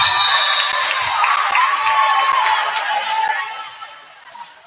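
A crowd cheers and claps in a large echoing gym.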